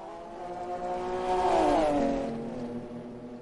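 A racing car engine roars past loudly, its pitch suddenly dropping.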